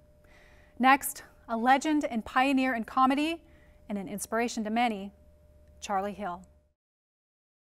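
A woman speaks clearly and calmly into a microphone, like a presenter.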